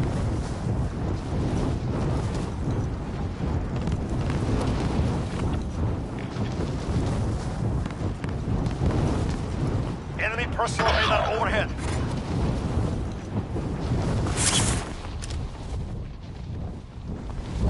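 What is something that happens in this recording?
Wind rushes and roars steadily past a falling parachutist.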